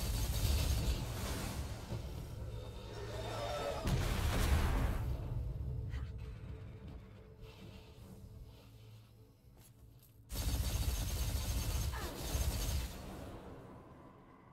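Gunfire and energy blasts boom in a game battle.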